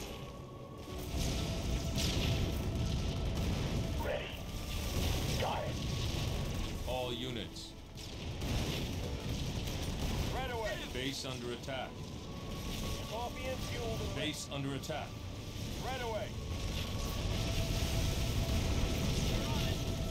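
Explosions and gunfire rumble in a battle.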